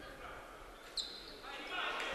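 Sneakers squeak briefly on a wooden court.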